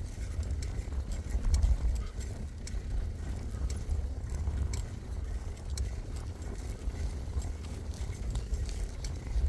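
Wind rumbles loudly against the microphone outdoors.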